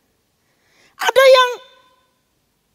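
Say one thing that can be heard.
A middle-aged woman speaks loudly through a microphone.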